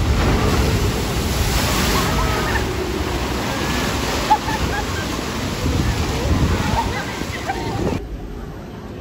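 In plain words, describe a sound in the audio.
Riders on a boat scream and shout.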